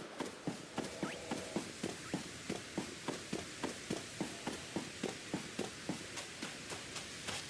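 Quick footsteps run on a dirt path.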